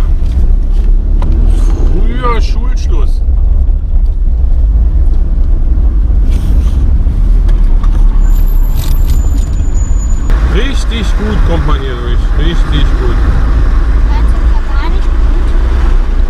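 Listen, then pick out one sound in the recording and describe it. A car engine hums low and steady from inside the car.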